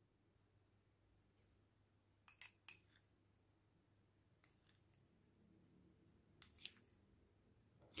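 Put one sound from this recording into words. A spoon scrapes and clinks softly against a glass bowl.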